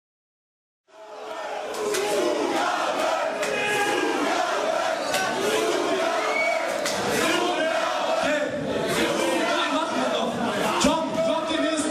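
Loud music plays through loudspeakers.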